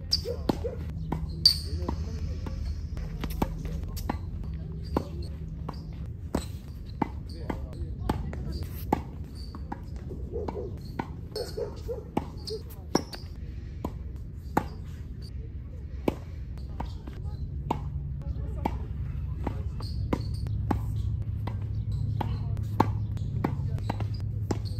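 A tennis ball is struck hard with a racket, again and again.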